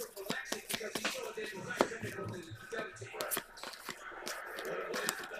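Trading cards slide and flick against each other in a person's hands.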